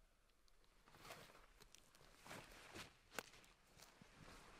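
A heavy cloak rustles as someone moves.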